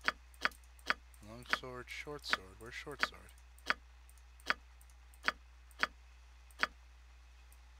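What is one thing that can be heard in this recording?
Sharp menu clicks tick at a steady pace.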